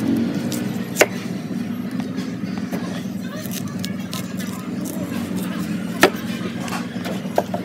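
A knife blade chops into a soft bamboo shoot on a wooden block with sharp knocks.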